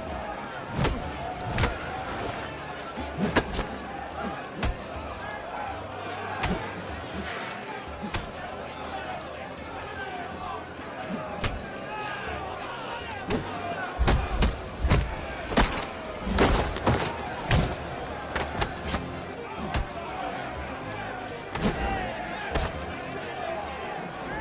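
Punches land with heavy thuds in a brawl.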